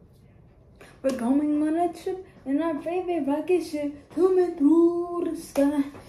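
A young woman sings loudly close by.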